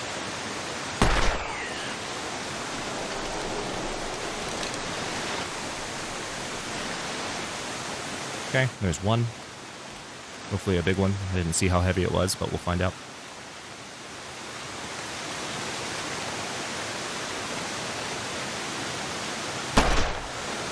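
A revolver fires a loud shot.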